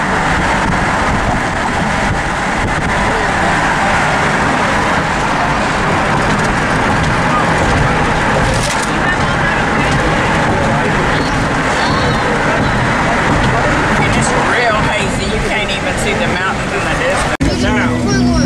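Tyres roar steadily on a road as a car drives fast.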